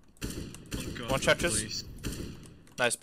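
Rapid gunshots crack from a rifle.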